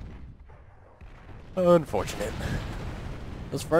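A tank explosion booms and rumbles.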